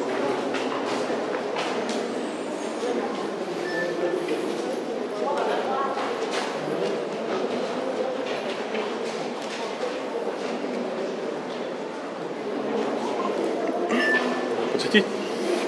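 A crowd of men and women chatter and murmur nearby in an echoing hall.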